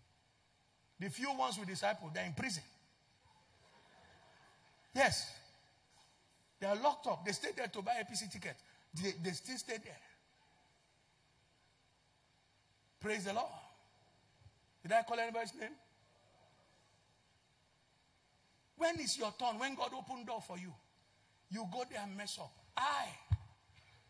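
A man speaks with animation through a microphone, in bursts with pauses.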